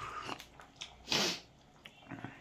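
A man lets out a loud breath.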